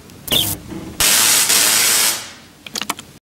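A machine hisses loudly and then fades.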